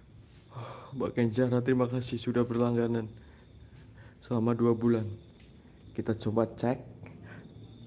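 A man speaks close by, calmly, in short bursts.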